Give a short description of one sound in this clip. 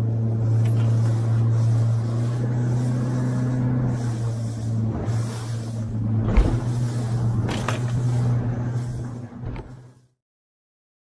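A motorboat engine drones as the boat runs over open sea.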